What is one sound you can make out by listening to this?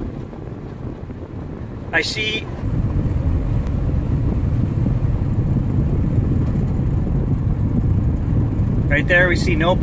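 A car rumbles steadily from inside as it drives.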